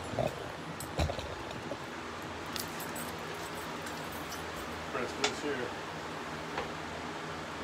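A saw's metal parts click and knock as a man handles it.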